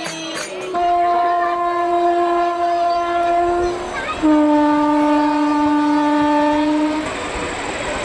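A young woman sings long, held notes into a microphone, heard through a loudspeaker.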